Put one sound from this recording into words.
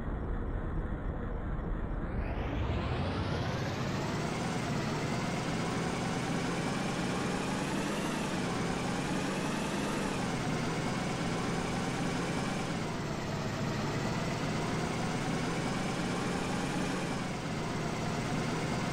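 A truck engine roars steadily, rising and falling in pitch as it drives.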